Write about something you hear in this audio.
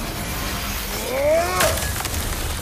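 An axe swishes through the air.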